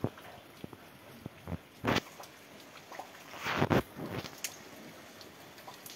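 Wind rustles through tree leaves outdoors in gusts.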